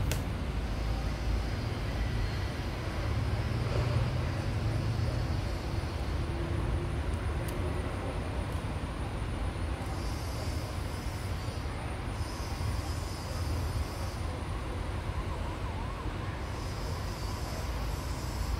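Men talk quietly nearby outdoors.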